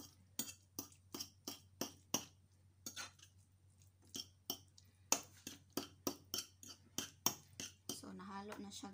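A fork clicks rapidly against a plate.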